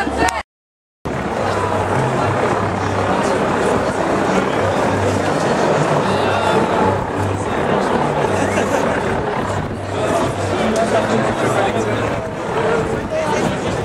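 A large crowd murmurs and talks outdoors.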